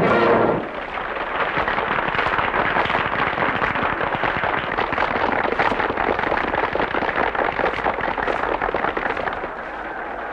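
Hands clap in quick rhythm.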